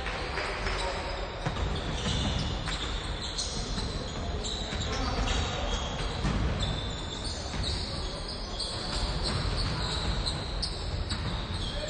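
Basketballs bounce on a wooden court in a large echoing hall.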